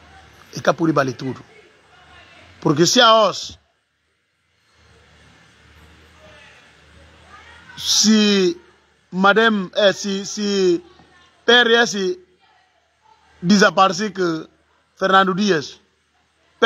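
A man speaks with animation close to a phone's microphone.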